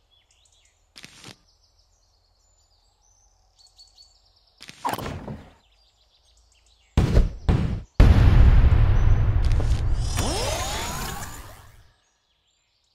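Game sound effects chime and pop.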